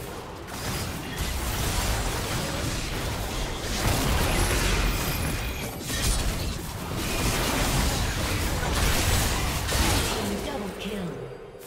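Spell blasts and hits crackle and boom in a fast game fight.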